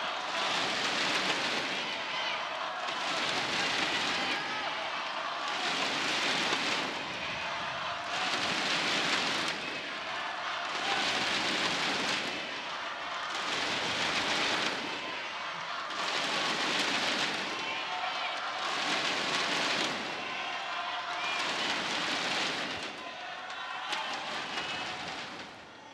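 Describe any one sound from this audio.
Plastic clappers bang together in a steady rhythm.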